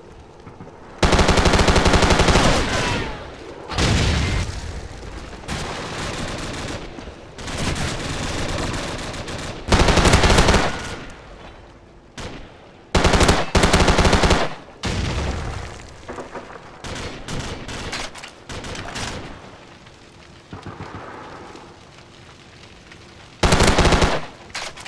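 A rifle fires in loud, rapid bursts.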